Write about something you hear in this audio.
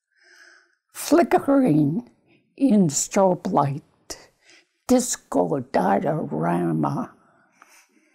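An elderly woman speaks slowly and calmly, close by.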